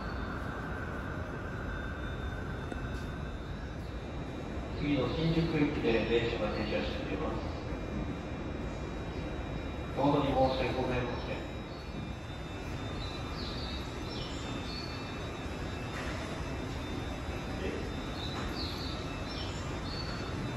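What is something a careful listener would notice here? A stopped electric subway train hums at a platform.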